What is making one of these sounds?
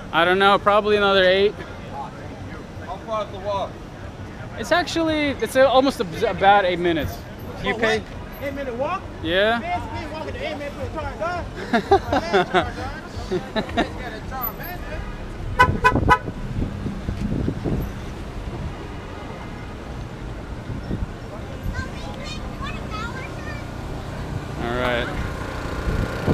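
A young man talks excitedly close to a microphone.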